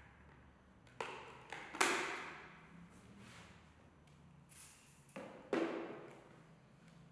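An aerosol can sprays with a short hiss.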